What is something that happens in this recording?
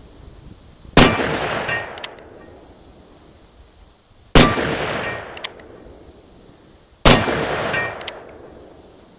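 Loud gunshots from a revolver ring out and echo outdoors.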